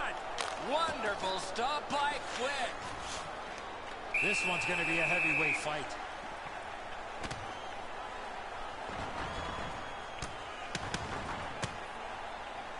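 A crowd murmurs and cheers in a large arena.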